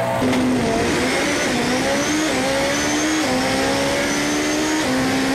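A racing engine roars loudly, its pitch climbing and dropping sharply with each gear change.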